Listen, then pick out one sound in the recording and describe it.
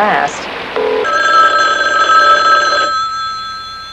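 A telephone rings loudly.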